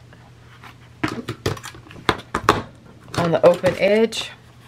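A metal hole punch clunks as it is pressed down.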